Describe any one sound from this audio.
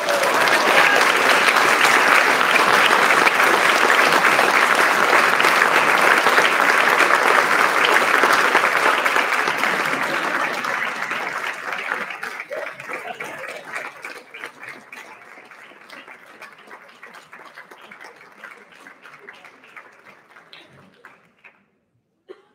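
An audience claps loudly in a large hall, and the applause slowly fades away.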